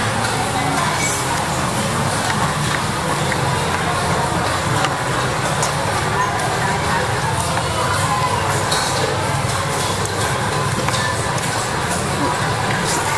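Metal cutlery scrapes and clinks against a plate.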